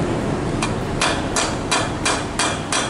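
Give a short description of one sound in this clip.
A hammer strikes metal in quick, sharp blows.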